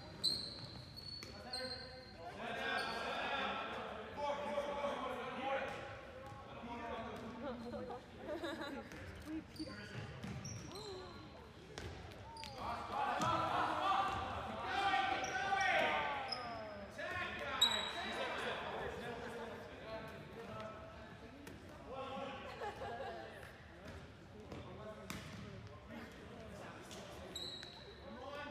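Young men shout to each other across an echoing gym.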